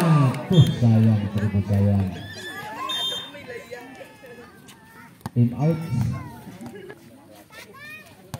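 Men shout and call out outdoors.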